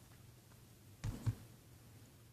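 A plastic disc case knocks softly against a carpeted floor.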